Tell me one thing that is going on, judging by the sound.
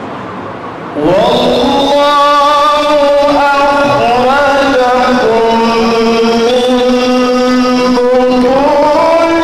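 A young man chants in a long, melodic voice through a microphone and loudspeakers.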